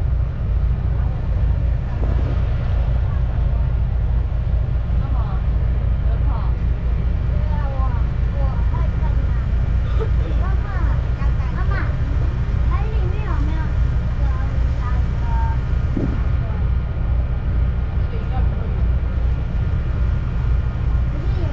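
Wind rumbles steadily outdoors over open water.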